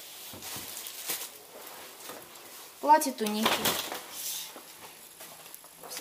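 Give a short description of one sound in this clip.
Fabric rustles and swishes close by.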